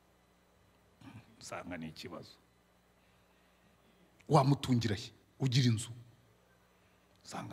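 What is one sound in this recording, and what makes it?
A middle-aged man speaks with feeling into a microphone, in bursts separated by pauses.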